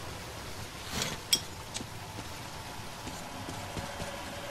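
A lighter clicks and sparks alight.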